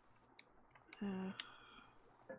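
A short electronic chime sounds as a menu opens.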